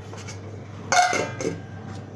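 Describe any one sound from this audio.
A metal bowl clanks against a counter.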